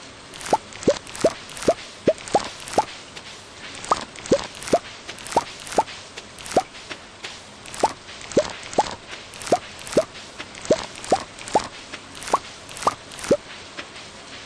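Short rising pops sound in quick succession as crops are picked.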